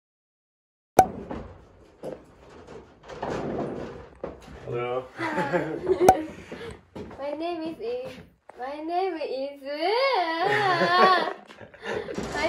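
A young woman talks and laughs nearby.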